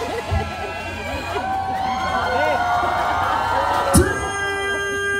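A young man sings into a microphone over a loudspeaker.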